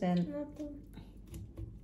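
A woman speaks briefly close by.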